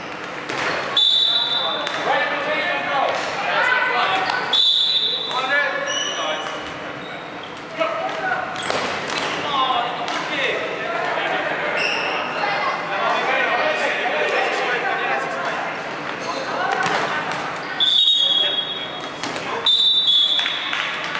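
A referee blows short whistle blasts.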